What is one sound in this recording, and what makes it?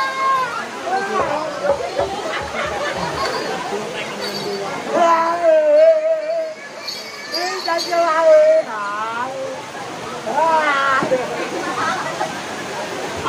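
A crowd of people murmurs and calls out around the performers.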